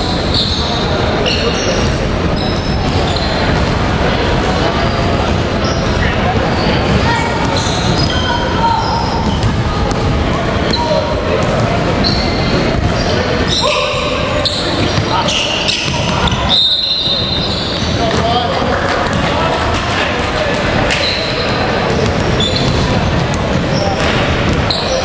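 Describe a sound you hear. Sneakers squeak on a hardwood court in an echoing hall.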